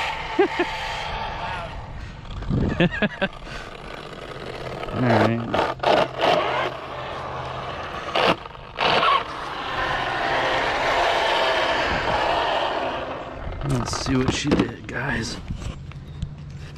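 A small model hovercraft's electric fan whirs loudly, rising and falling in pitch.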